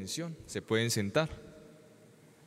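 A young man sings a short phrase into a microphone, echoing in a large hall.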